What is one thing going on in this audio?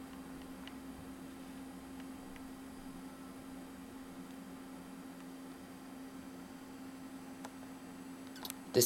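A computer hums steadily and quietly.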